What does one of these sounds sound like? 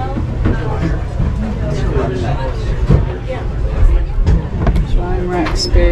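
A lid bumps open and shut.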